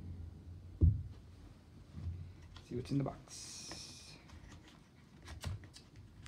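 Hands handle plastic packaging with light clicks and rustles.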